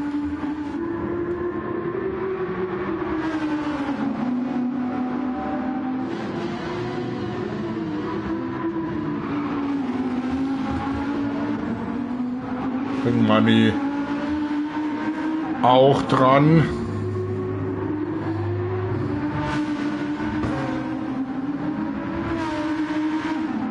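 A race car engine roars steadily, its pitch rising and falling as it shifts gears.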